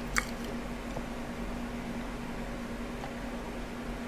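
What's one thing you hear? A young man sips a drink with soft slurps.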